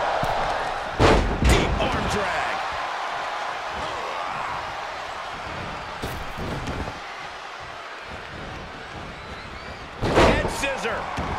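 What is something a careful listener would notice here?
Heavy bodies slam hard onto a wrestling ring mat.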